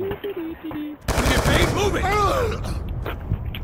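A rifle fires a short burst of shots.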